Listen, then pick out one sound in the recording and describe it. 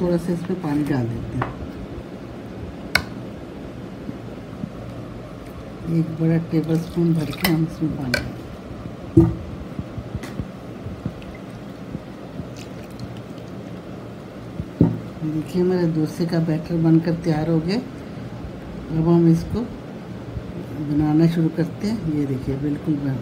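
A metal spoon clinks and scrapes against a bowl while stirring.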